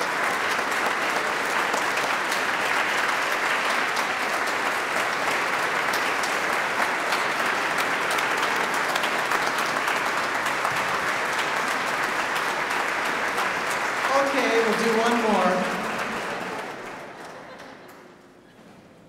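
A large audience applauds in a large echoing hall, then the applause fades away.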